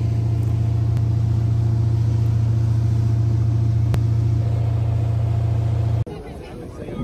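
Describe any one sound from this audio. A boat engine hums loudly and steadily close by.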